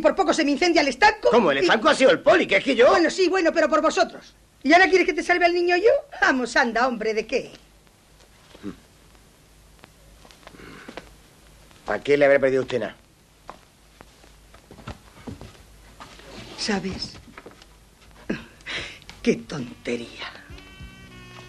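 A middle-aged woman speaks loudly and with animation close by.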